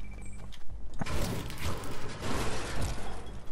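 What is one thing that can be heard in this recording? A pickaxe clangs against a metal bin.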